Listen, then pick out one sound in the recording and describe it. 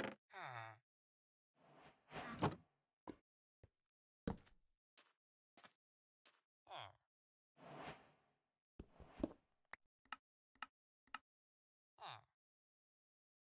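Short game clicks and pops sound as items are moved around.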